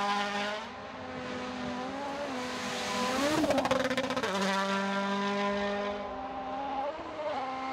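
A rally car engine roars at high revs, shifting pitch as it speeds past.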